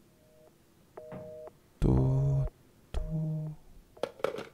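A telephone beeps with short electronic tones.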